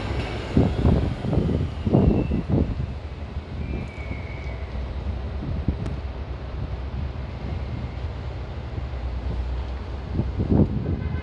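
A city bus engine rumbles as it approaches down the street.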